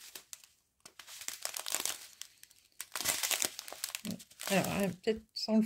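Small beads rattle and shift inside a plastic bag.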